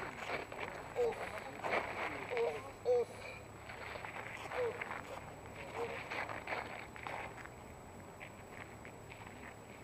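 Feet scuff and step on asphalt.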